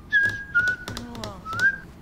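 A young man whistles a tune close by.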